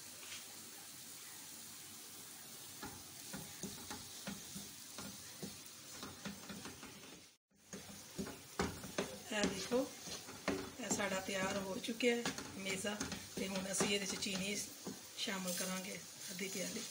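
A wooden spatula scrapes and stirs crumbly food in a pan.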